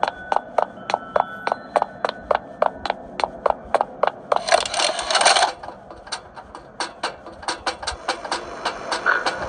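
Quick footsteps clank on a metal surface.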